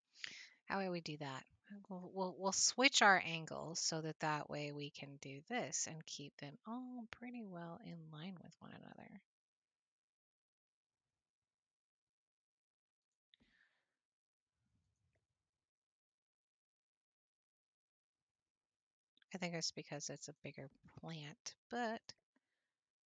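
A young woman talks with animation close to a headset microphone.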